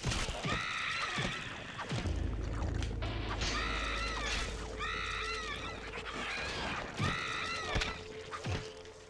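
A ghost wails in short, repeated high cries.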